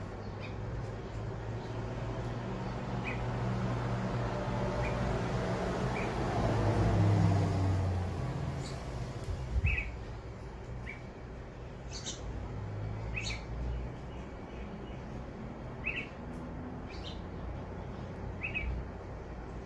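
Young birds chirp and cheep in short, high calls.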